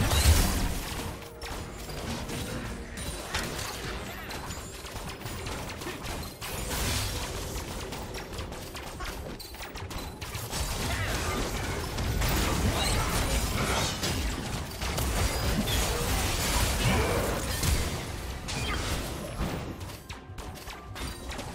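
Fantasy battle sound effects of magic blasts and weapon strikes clash in quick succession.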